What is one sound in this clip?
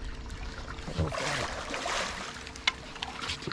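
A fish splashes in the water as it is netted.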